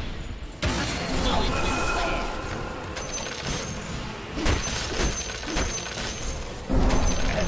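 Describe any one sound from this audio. Weapons clash and hit repeatedly.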